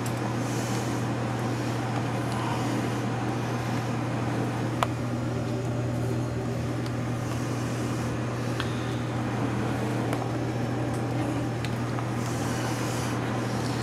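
A fluorescent lamp hums steadily nearby.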